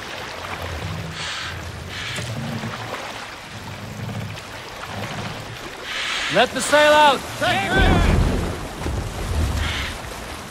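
Oars splash rhythmically through water.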